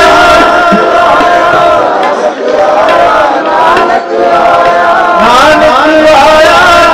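A man sings a devotional chant through a microphone.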